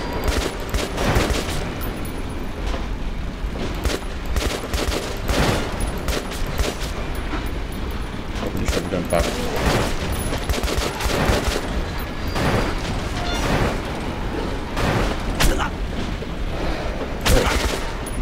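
Monsters snarl and growl nearby.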